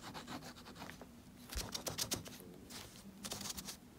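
A sheet of paper rustles as it is moved.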